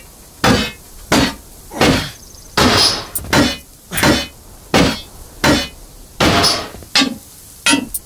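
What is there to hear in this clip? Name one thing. Heavy blows land again and again in a steady rhythm.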